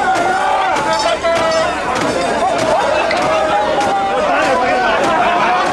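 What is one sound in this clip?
A man shouts calls to a crowd.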